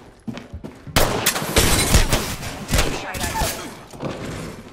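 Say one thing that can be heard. Rapid gunfire bursts out in quick volleys.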